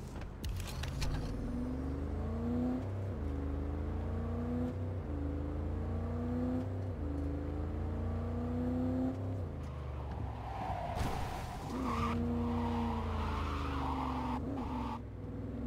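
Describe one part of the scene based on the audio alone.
A car engine revs up and down repeatedly while accelerating.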